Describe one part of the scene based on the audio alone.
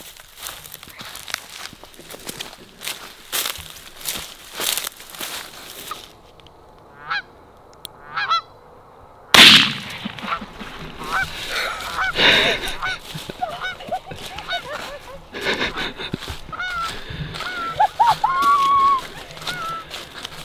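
Footsteps crunch through dry corn stubble.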